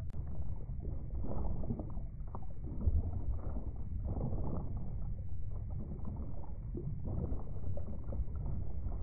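A muffled underwater rush of water swirls past a swimming fish.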